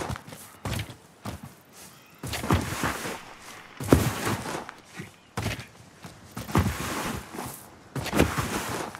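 Footsteps run quickly over grass and rocky ground.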